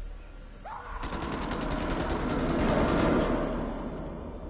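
A pistol fires rapidly.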